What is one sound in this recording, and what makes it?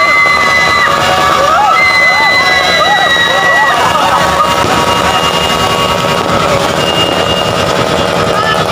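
A firework fountain hisses and crackles loudly nearby.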